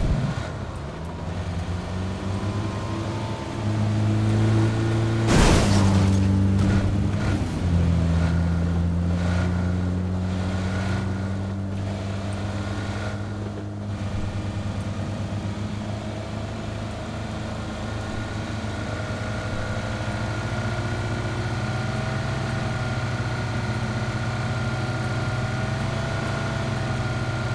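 A car engine hums and revs steadily as the car drives.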